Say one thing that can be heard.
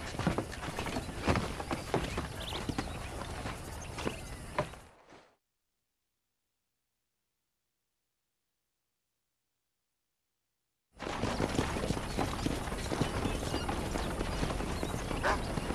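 A wooden wagon creaks and rolls over dirt.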